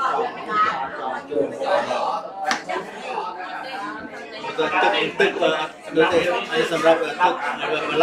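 An older man speaks up close.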